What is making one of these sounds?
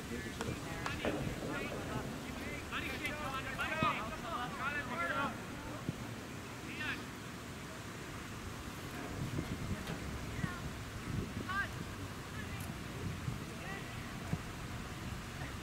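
Young players shout to each other in the distance outdoors.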